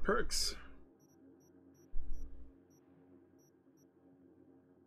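Soft menu beeps tick repeatedly.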